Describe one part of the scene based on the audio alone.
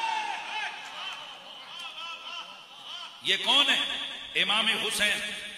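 A man speaks with animation into a microphone, heard through a loudspeaker in an echoing room.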